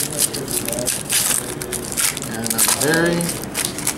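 A foil wrapper crinkles as a pack is torn open.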